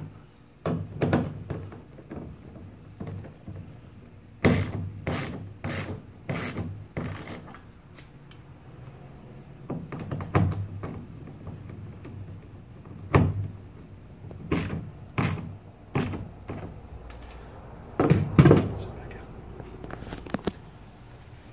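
A handheld drill clicks and whirs in short bursts.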